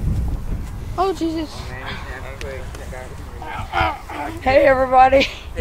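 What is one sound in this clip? A young boy speaks up close with animation.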